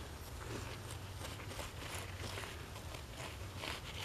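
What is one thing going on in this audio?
A gloved hand scrapes and digs through loose, gritty soil.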